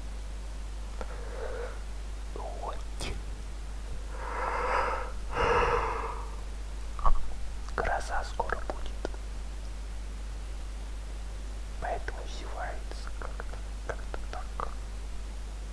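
A young woman talks quietly, close to a microphone.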